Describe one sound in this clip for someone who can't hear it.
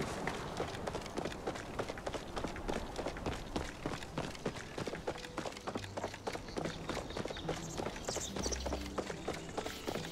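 Quick footsteps patter on stone paving.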